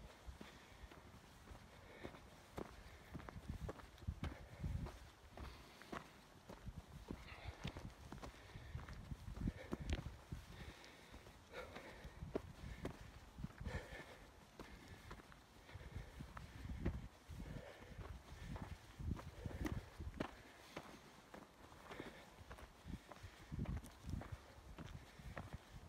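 Footsteps crunch steadily on a dirt and gravel track.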